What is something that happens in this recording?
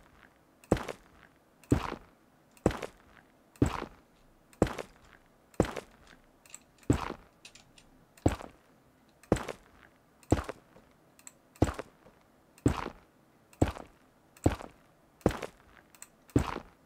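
Blocks are placed one after another with soft, sharp thuds at a steady pace.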